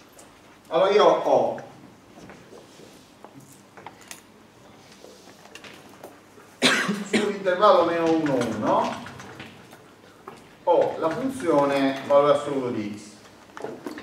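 An older man speaks calmly in a room with some echo.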